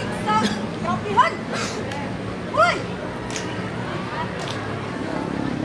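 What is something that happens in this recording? Boots stamp in unison on wet pavement.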